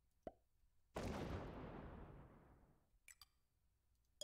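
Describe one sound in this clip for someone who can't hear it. Dice roll and clatter in a short burst.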